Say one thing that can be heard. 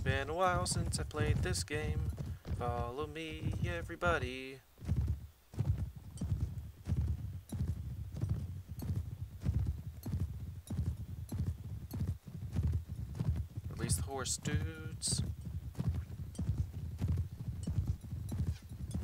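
A horse gallops with a steady drumming of hooves.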